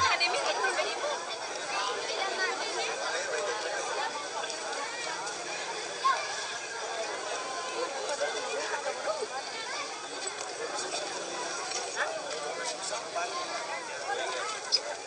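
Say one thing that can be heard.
A crowd of men and women chatter and call out close by, outdoors.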